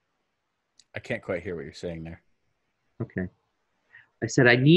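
A second man answers calmly through a headset microphone over an online call.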